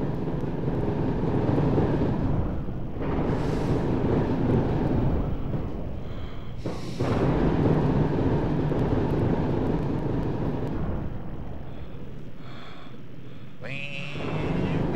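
Water rushes and churns with a low, steady rumble.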